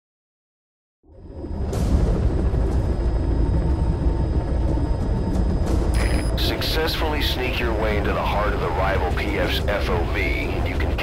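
A helicopter's engine and rotor drone loudly from inside the cabin.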